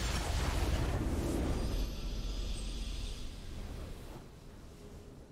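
A triumphant game fanfare swells and then fades.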